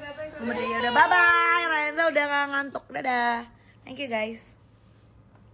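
A young woman talks with animation, close to a phone microphone.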